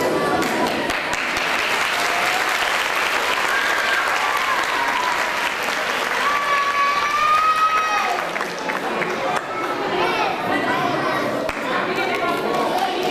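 Young children sing together.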